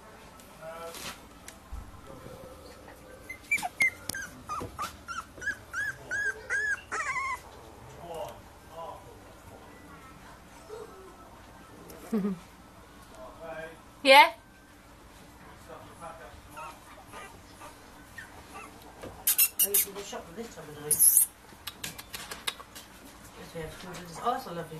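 Puppies scuffle and scratch on a soft floor.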